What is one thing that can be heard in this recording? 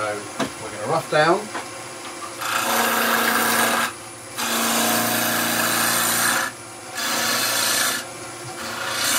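A wood lathe hums steadily.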